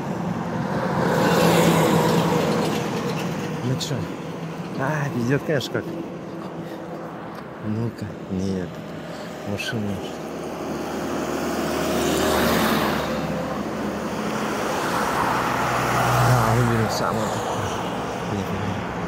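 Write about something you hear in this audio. Vehicles drive past on a road, each one rising and fading.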